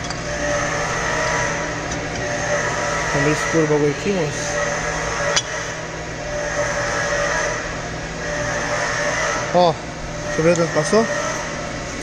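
Metal parts clink and scrape as an engine cylinder slides into place.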